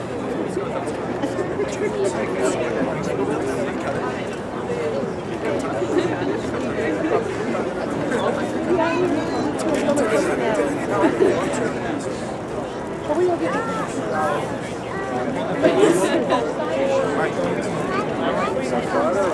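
A brass and wind band plays a lively tune outdoors.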